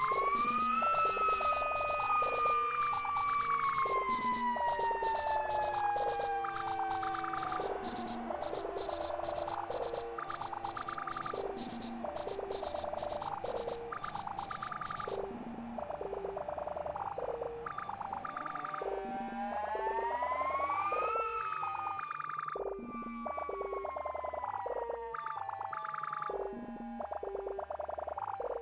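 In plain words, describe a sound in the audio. An electronic drum machine plays a steady looping beat with clicking hi-hats.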